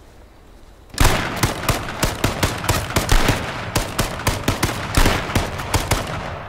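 Footsteps crunch quickly over rough ground.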